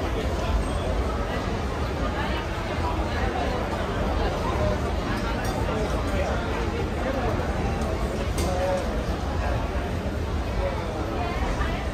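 A young woman talks with a customer.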